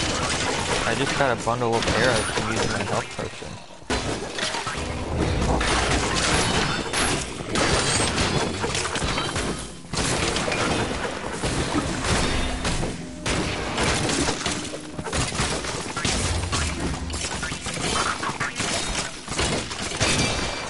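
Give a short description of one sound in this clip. Game weapons clash and hit monsters in a fast, busy fight.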